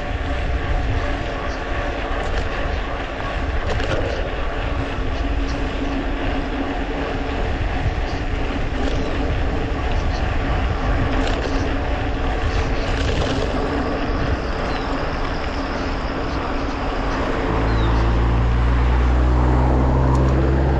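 Wind buffets loudly as a bicycle rides along.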